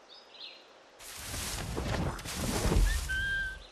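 Leaves rustle as someone pushes through leafy bushes.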